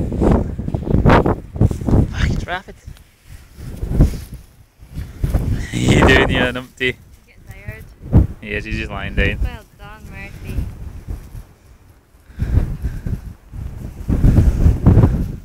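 Wind rumbles over the microphone outdoors.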